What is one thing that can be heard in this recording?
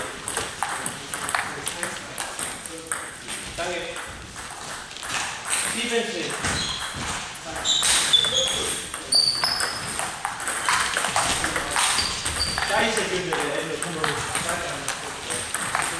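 Ping-pong balls click sharply off paddles and tables in a large echoing hall.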